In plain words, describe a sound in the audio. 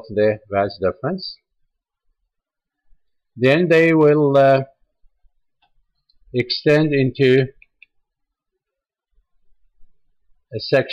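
An older man speaks calmly and explains, close by, in short phrases with pauses.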